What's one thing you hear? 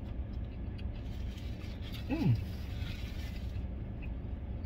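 A napkin rustles against a man's face.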